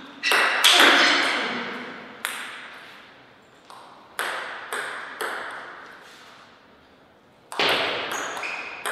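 A table tennis ball knocks sharply off paddles and the table, echoing through a large hall.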